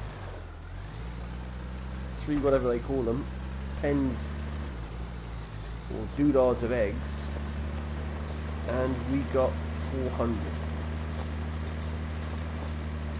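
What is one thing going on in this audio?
A tractor engine hums steadily at low revs.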